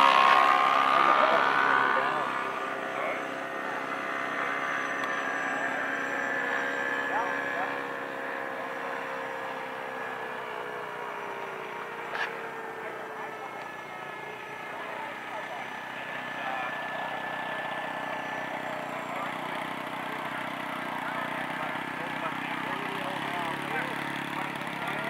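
A small model airplane engine buzzes overhead, its pitch sliding as it flies past.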